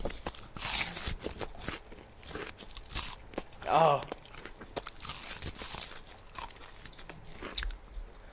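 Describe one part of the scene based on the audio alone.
Crispy fried chicken crunches loudly close to a microphone as a young man bites and chews.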